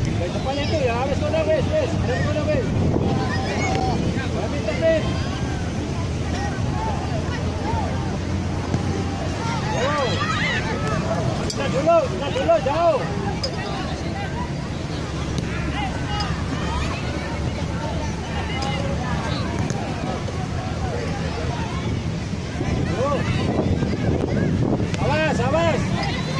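Children shout to each other while playing.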